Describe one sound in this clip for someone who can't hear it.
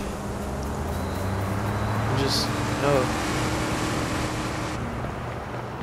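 A truck engine hums as a truck drives past.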